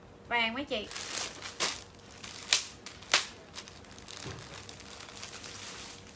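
Plastic wrapping crinkles as clothes are handled.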